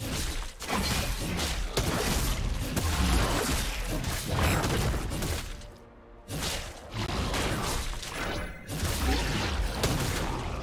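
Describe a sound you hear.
Sword slashes and magic effects clash rapidly.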